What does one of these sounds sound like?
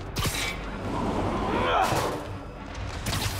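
A small blast goes off with a loud bang.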